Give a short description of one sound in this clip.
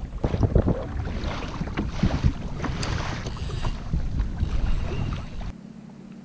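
Wind blows strongly outdoors, buffeting loudly.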